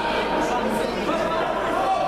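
A man coaching calls out loudly to a fighter.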